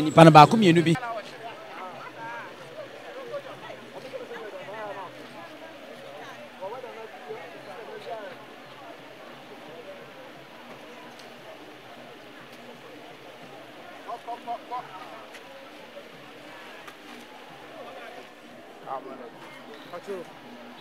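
People chatter faintly in the distance.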